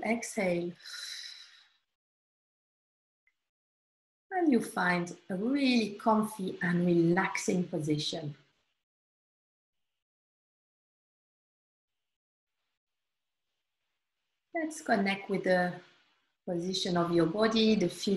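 A woman speaks calmly and softly, close to the microphone, with long pauses.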